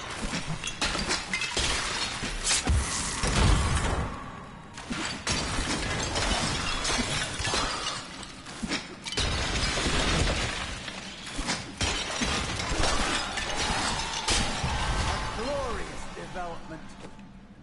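Game combat sounds crash and clash with spells and impacts.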